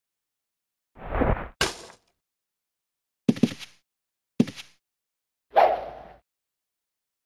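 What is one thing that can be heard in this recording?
Weapon blows strike in short, sharp bursts.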